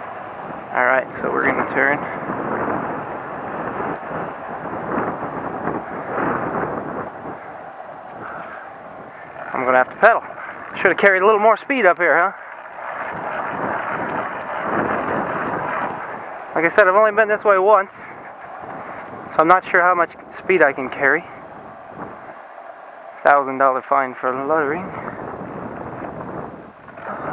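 Wheels roll over rough asphalt.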